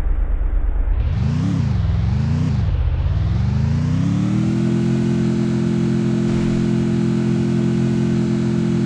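A vehicle engine revs up and down, then holds a steady drone while driving.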